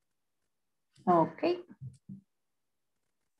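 A young woman speaks briefly and calmly over an online call.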